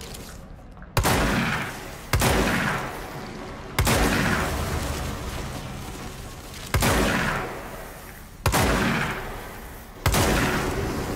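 A pistol fires loud shots that echo through a large tunnel.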